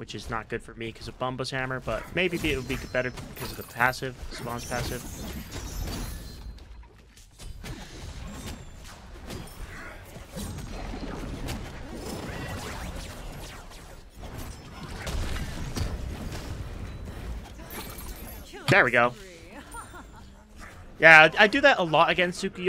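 Weapons clash and spells whoosh in a lively fight.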